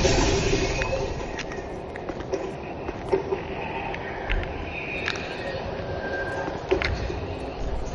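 Footsteps scrape over roof tiles.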